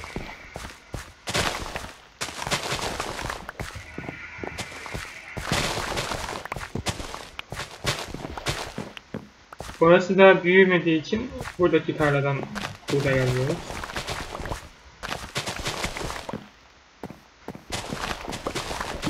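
Crops snap and rustle as they are harvested quickly, over and over.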